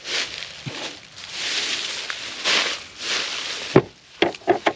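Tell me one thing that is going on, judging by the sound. Footsteps crunch through dry straw.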